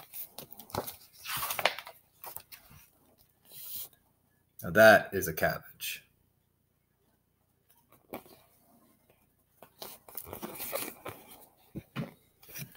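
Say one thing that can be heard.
A man reads aloud expressively, close to a microphone.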